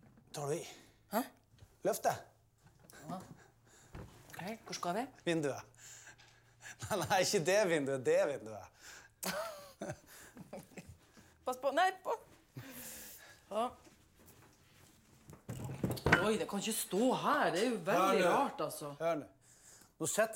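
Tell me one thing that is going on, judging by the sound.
A woman speaks loudly and upset, close by.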